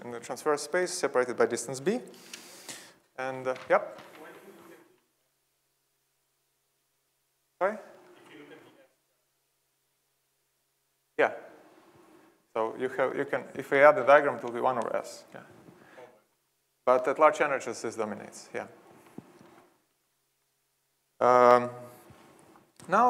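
A young man lectures calmly through a microphone in a large hall, pausing between phrases.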